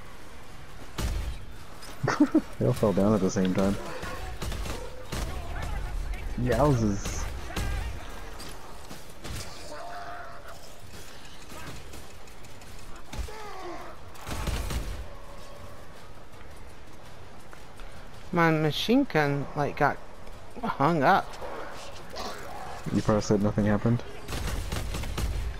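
A heavy gun fires loud blasts.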